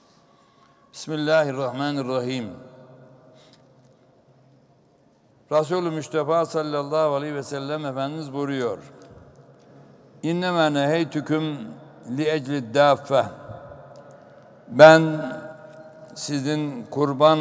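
An elderly man speaks slowly and calmly into a close microphone, in short phrases with pauses.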